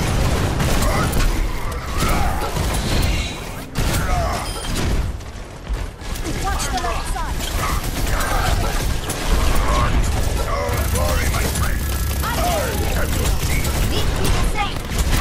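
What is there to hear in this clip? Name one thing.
Rapid gunfire rattles in a game.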